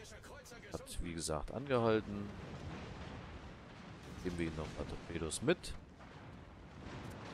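Heavy naval guns fire in booming salvos.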